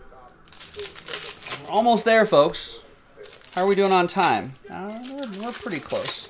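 A foil card pack crinkles and tears.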